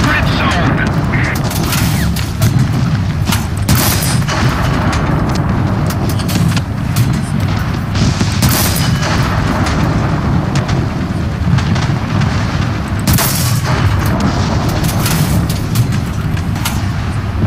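A tank engine rumbles steadily, low and heavy.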